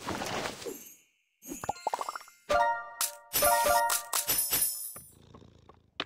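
Bright game chimes ring out with a sparkling jingle.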